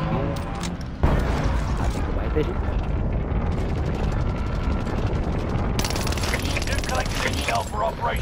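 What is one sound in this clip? A giant monster's energy beam roars with a deep, steady rumble.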